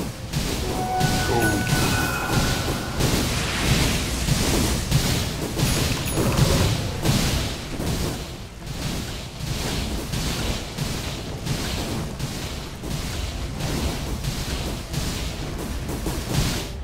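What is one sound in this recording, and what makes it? Game creatures clash with dull hits.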